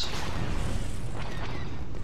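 Laser blasters fire in quick bursts.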